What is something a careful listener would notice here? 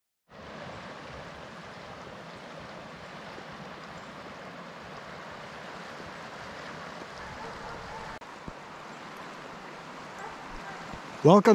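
Water of a river rushes steadily outdoors.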